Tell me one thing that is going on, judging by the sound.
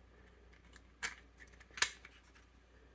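Hard plastic parts click and knock together in the hands.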